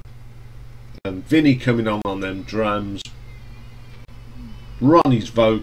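A middle-aged man speaks calmly and closely into a microphone.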